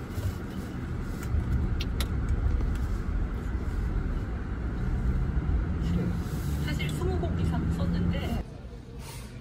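A car engine rumbles steadily inside a moving car.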